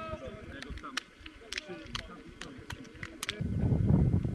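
A group of players claps their hands.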